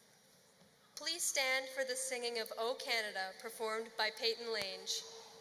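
A young woman speaks calmly through a microphone and loudspeakers.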